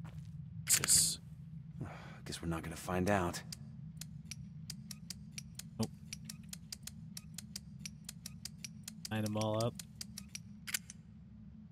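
Metal lock switches click as they slide into place.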